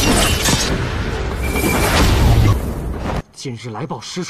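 Loud whooshing and thumping noise rushes past.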